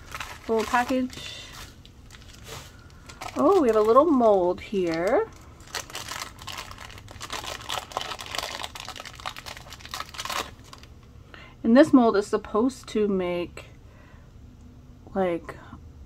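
A plastic bag crinkles and rustles as it is handled up close.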